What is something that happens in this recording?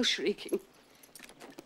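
An elderly woman speaks briefly and sternly.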